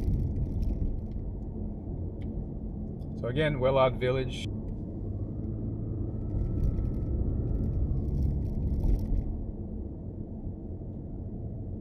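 A car engine hums low and steady with tyre rumble on the road, heard from inside the car.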